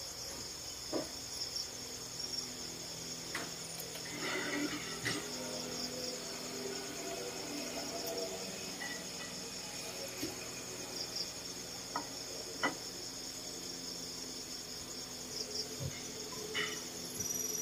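Dishes clink now and then as food is picked from plates.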